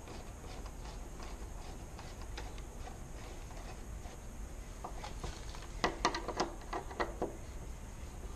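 A screwdriver clicks and scrapes against a metal door lock.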